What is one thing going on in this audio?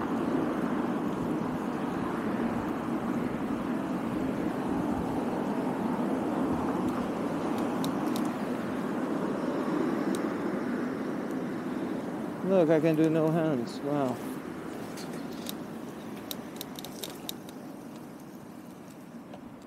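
Bicycle tyres hum over paving stones.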